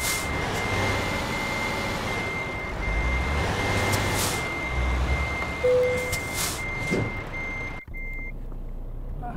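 A truck's reversing alarm beeps steadily.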